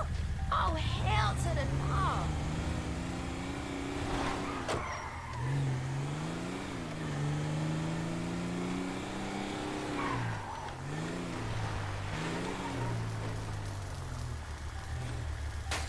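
A truck engine hums and revs, rising and falling as the truck drives.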